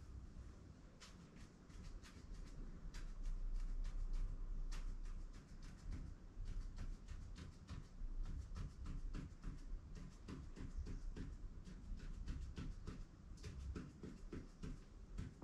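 A pen taps and scratches quickly on a hard surface.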